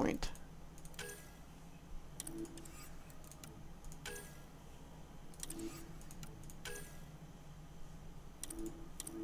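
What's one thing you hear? Soft electronic menu clicks and chimes sound as options are selected.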